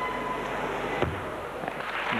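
A gymnast lands on a mat with a thud.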